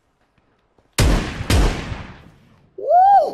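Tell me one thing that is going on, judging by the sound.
Gunshots fire loudly in a stairwell.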